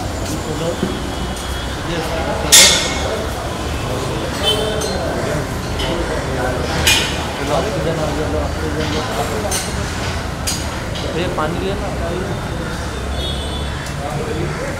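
A crowd of men and women talks nearby.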